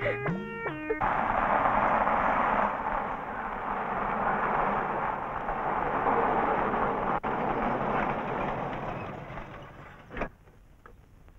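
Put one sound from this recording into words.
A car engine rumbles as a car drives up and stops.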